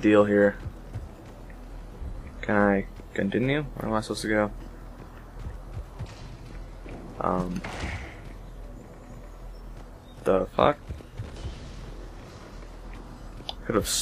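Armoured footsteps thud on a hard floor.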